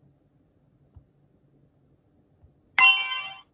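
A finger taps on a glass touchscreen.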